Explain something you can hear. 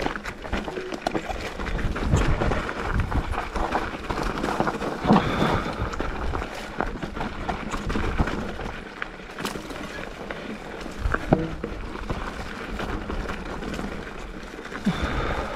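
Bicycle tyres crunch and rattle over a rocky dirt trail.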